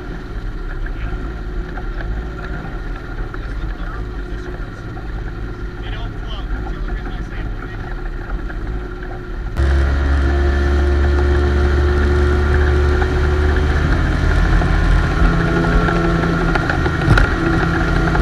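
A boat engine hums steadily, then roars louder as the boat speeds up.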